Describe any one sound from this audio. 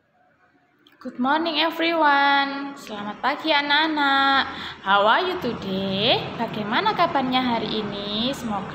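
A young woman speaks calmly and clearly into a microphone, close by.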